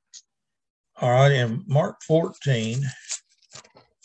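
An elderly man speaks calmly, heard through an online call.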